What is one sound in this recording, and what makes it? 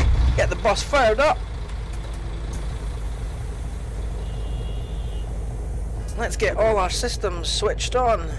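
A bus engine rumbles low and steady.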